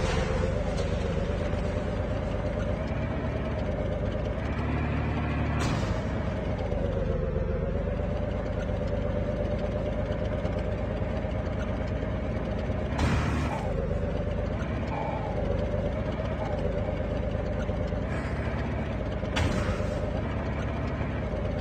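Tank treads clatter over the ground.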